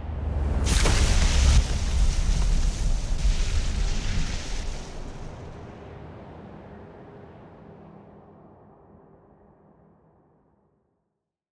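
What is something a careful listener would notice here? An avalanche of snow roars down with a deep rumble, then slowly fades away.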